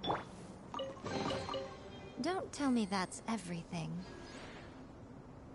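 A treasure chest creaks open with a bright, sparkling chime.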